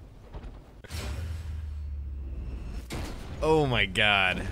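Wooden crates and heavy metal crash down with a rumbling impact.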